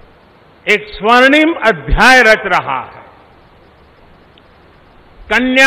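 An elderly man speaks slowly and forcefully into a microphone.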